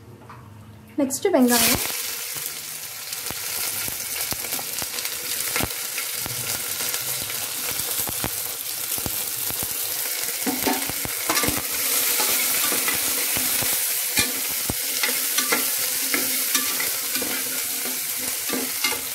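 Onions drop into hot oil and sizzle loudly.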